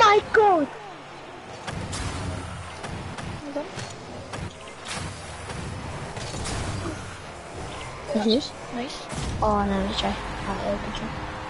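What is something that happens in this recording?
A car engine hums and boosts with a rushing roar.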